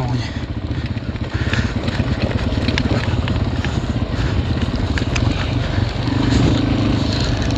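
A quad bike engine runs with a steady, throbbing rumble.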